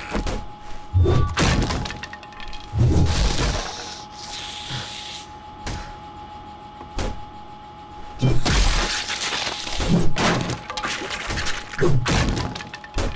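An axe thuds heavily into a body again and again.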